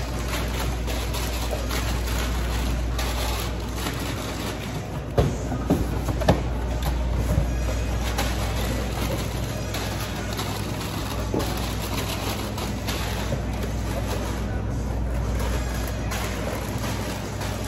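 Cardboard boxes rustle and scrape.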